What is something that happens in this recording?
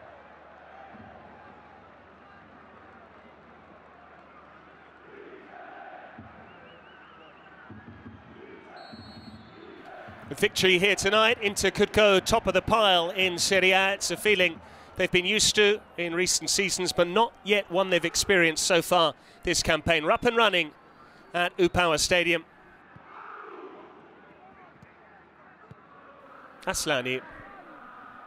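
A large stadium crowd murmurs and cheers in the distance.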